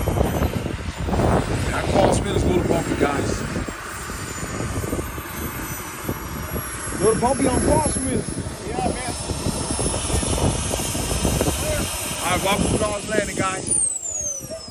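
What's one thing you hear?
A model jet's turbine whines loudly and steadily close by.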